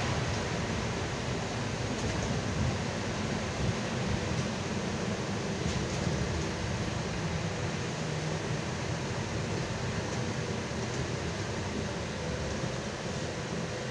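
Tyres hiss on a slushy road.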